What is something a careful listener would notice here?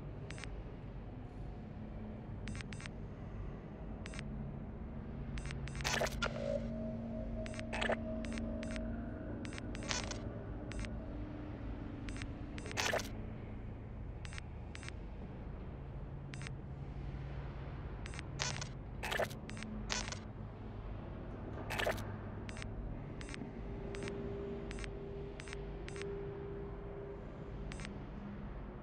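Short interface clicks and beeps sound as a game menu is scrolled through.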